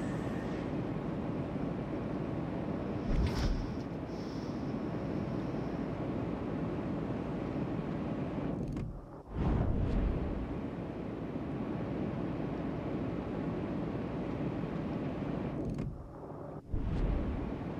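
A large ship's engines rumble low and steadily over rushing water.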